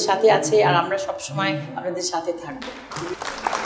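A woman speaks clearly and warmly, close to a microphone.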